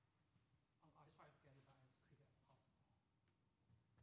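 A man speaks quietly nearby, away from the microphone.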